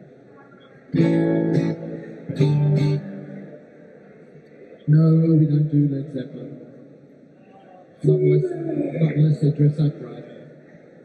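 A woman plays an electric guitar in loud bursts of chords.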